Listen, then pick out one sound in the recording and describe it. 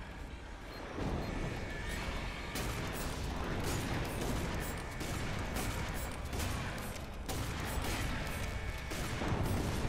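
A shotgun fires loud, rapid blasts.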